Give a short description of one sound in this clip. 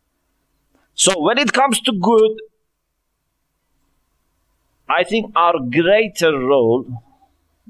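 A man speaks calmly into a microphone, close by, with pauses.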